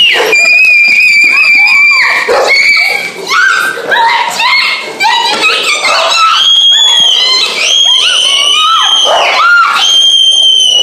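A young girl squeals excitedly close by.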